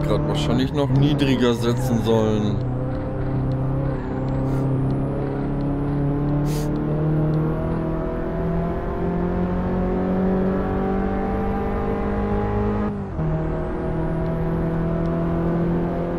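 A small car engine revs and climbs steadily through the gears, with a brief drop at a gear change.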